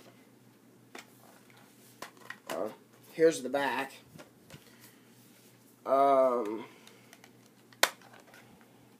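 Plastic packaging crinkles and clicks in a man's hands.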